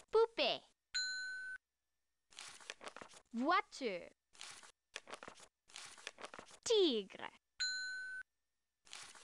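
A bright electronic chime rings as cards turn over.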